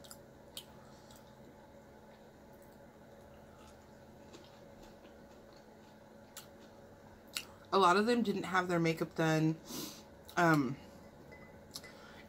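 A young woman chews food with soft, wet mouth sounds.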